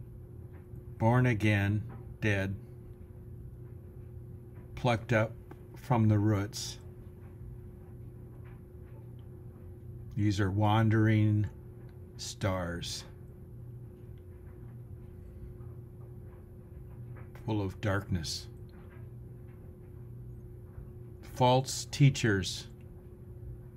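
An elderly man speaks calmly in short bursts, close to the microphone, with pauses between phrases.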